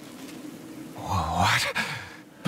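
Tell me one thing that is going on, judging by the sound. A man speaks in a deep, calm voice.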